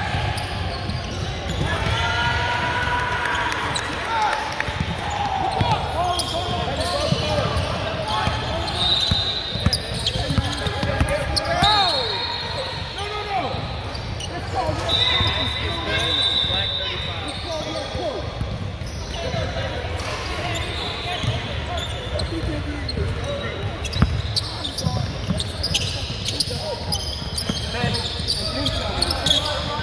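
A crowd of young people chatters in a large echoing gym.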